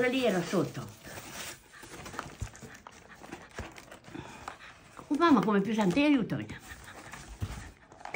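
A cardboard box scrapes and rustles.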